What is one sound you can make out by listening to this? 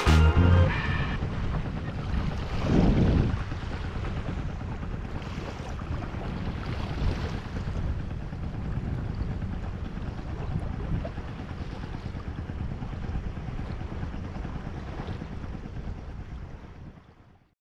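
Small waves lap gently on the water.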